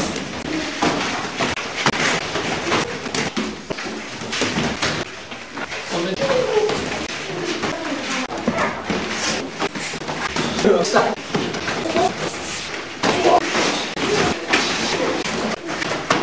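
Feet shuffle and thump on a padded floor.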